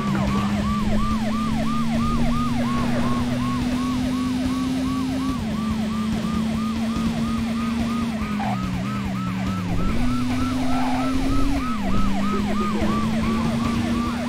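A car engine hums, changing pitch as gears shift.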